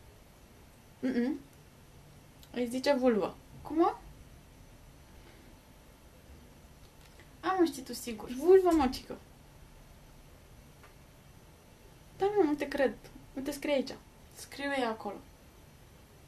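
A second young woman answers in short phrases close by.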